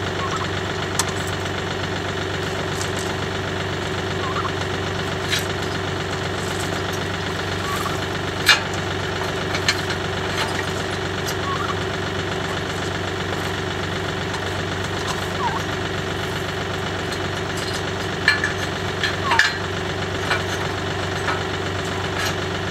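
A tractor engine idles steadily nearby.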